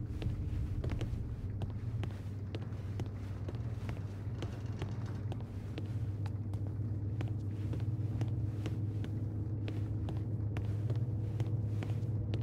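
Footsteps tread slowly across a hard floor.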